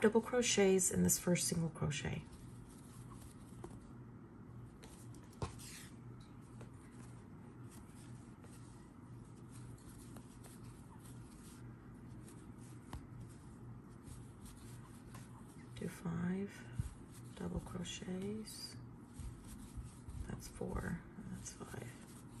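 A crochet hook softly pulls yarn through stitches.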